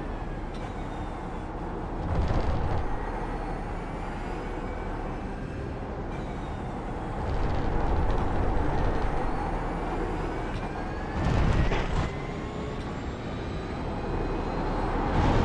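A racing car engine roars and rises and falls in pitch as gears shift.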